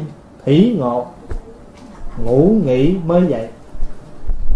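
A man speaks slowly in a drawn-out, sing-song voice through a microphone.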